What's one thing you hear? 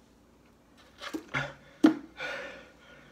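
A young man gasps and exhales loudly after drinking.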